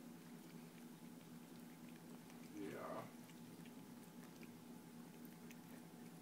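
A cat chews and nibbles on a treat.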